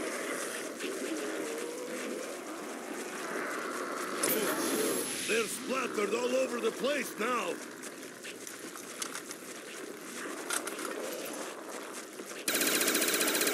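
A weapon fires in rapid bursts.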